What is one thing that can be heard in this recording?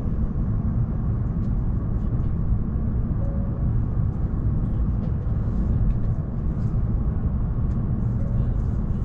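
A train's motor hums with a low, steady rumble.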